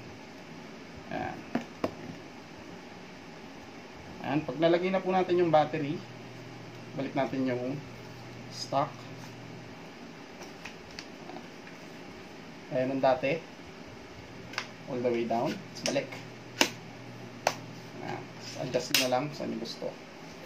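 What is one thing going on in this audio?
Plastic parts click and knock as they are handled.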